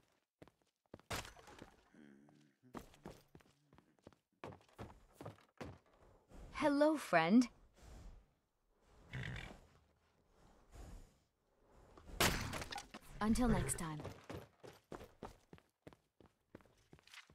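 Footsteps tread on stone and wooden boards.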